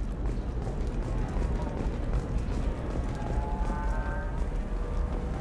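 Heavy armored footsteps thud on a metal floor.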